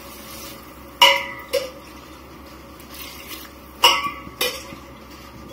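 A metal spoon clinks against a steel cooking pot.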